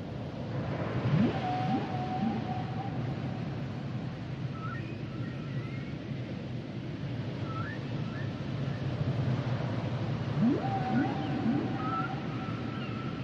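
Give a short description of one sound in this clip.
Dolphins whistle in rising and falling glides underwater.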